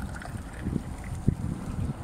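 Liquid pours from a kettle spout into a glass.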